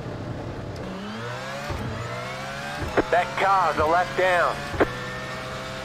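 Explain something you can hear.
A race car engine revs rise and drop sharply as gears shift up.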